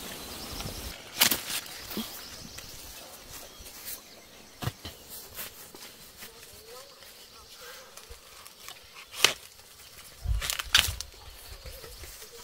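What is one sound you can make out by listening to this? Corn ears snap and crack as they are broken off the stalks.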